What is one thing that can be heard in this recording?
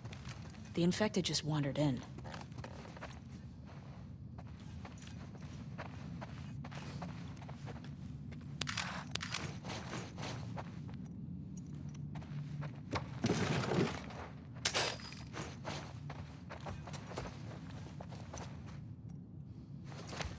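Footsteps creak across a wooden floor.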